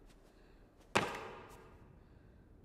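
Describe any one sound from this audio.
A heavy thud lands and rings out in an echoing space.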